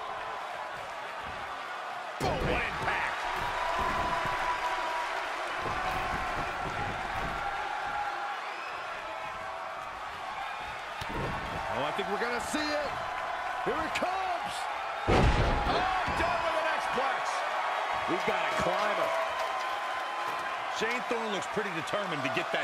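A large crowd roars and cheers throughout.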